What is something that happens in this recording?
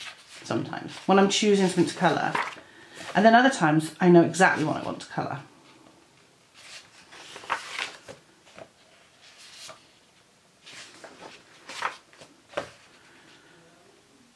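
Paper pages of a book are turned.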